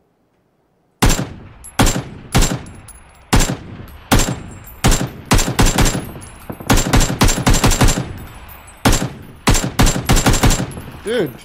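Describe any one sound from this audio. Rifle shots crack in quick bursts, loud and close.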